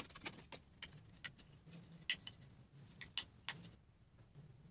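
Paper rustles and crinkles between fingers.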